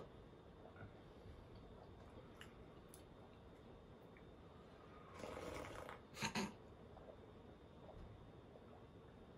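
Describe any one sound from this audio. A man sips and gulps juice from a glass.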